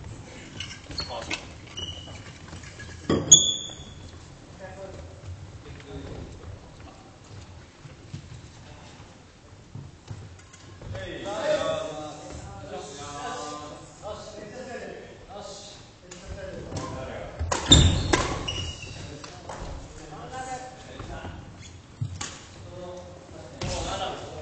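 Sneakers squeak on the wooden floor.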